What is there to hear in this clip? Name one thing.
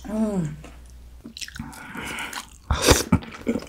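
A young woman slurps noodles loudly and close up.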